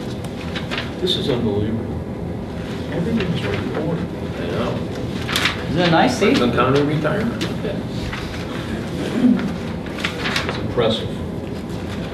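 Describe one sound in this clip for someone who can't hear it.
A man speaks calmly in a room, heard from across the room.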